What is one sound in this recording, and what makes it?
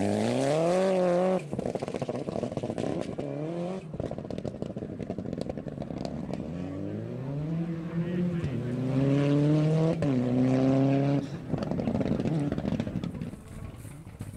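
A rally car engine revs hard and roars nearby.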